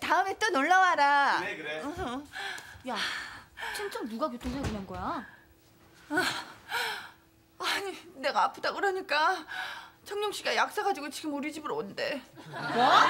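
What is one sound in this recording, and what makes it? A woman shouts in high-pitched surprise, close by.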